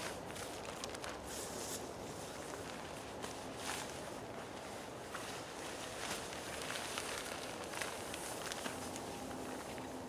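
Tent fabric rustles and flaps as a man crawls inside.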